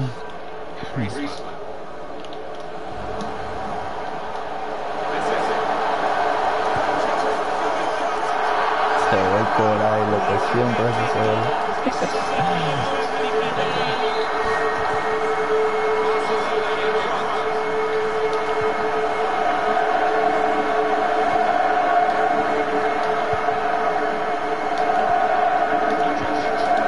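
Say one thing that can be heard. A large stadium crowd cheers and roars, swelling louder around a goal.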